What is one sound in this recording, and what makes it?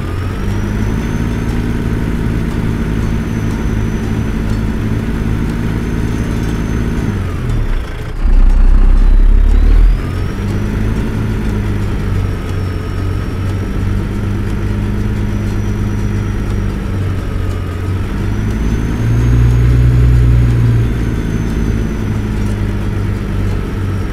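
Tyres crunch over a rough gravel track.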